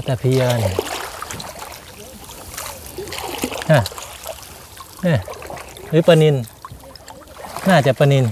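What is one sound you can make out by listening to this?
Water sloshes and splashes.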